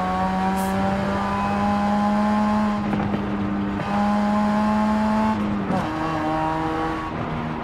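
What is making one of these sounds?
A sports car engine roars at high revs, dropping briefly with each gear change.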